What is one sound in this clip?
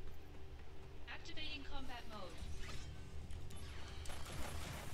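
Swords clash and magic effects burst in a quick fight.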